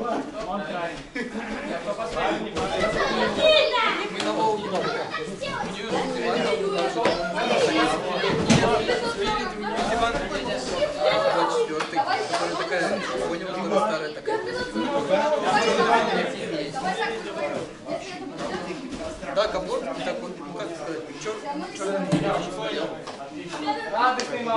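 Many young men talk and call out over one another in a large echoing hall.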